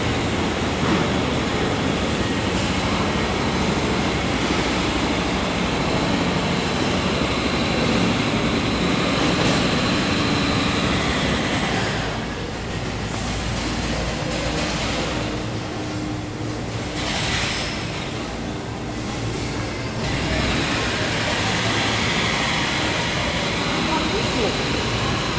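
A crowd of shoppers murmurs in the distance.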